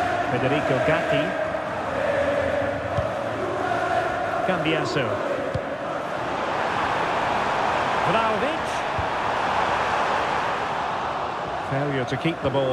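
A large crowd roars and murmurs steadily in an open stadium.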